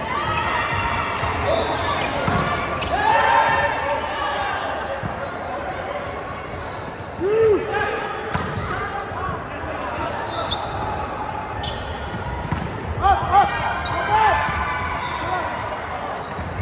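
Players shout and call to each other throughout a large echoing gym.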